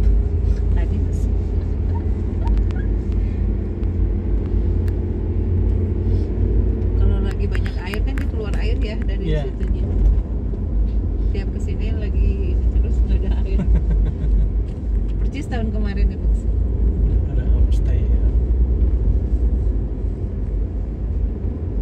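A car drives along an asphalt road, heard from inside as a low rumble.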